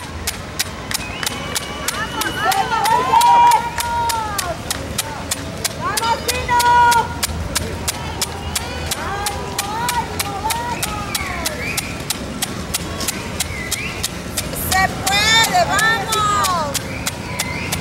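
Spectators cheer and shout from the roadside.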